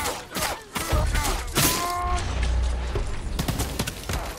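A volley of arrows whooshes and thuds into the ground.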